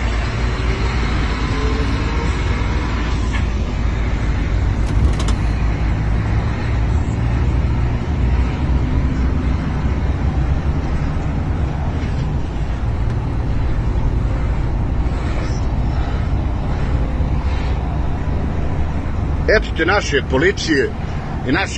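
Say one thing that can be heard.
A car engine hums steadily with road rumble from inside the vehicle.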